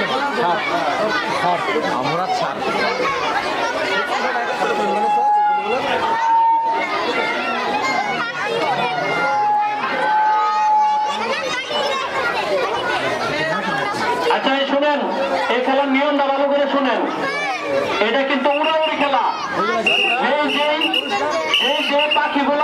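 Many children chatter and shout outdoors.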